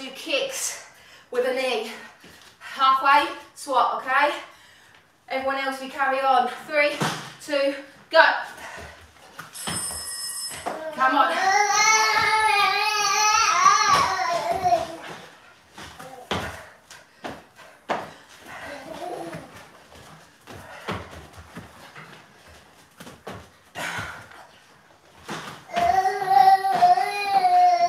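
Feet thud on a floor mat as people jump.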